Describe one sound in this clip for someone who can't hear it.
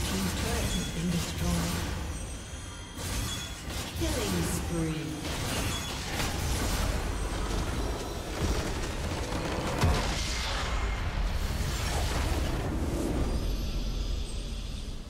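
Game spell effects crackle and clash in a fight.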